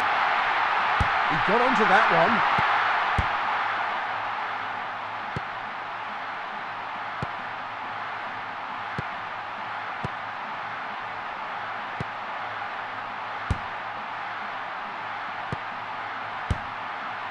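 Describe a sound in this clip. A ball is kicked with short, dull thuds now and then.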